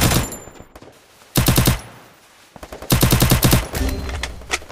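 Rapid gunshots fire in short, loud bursts.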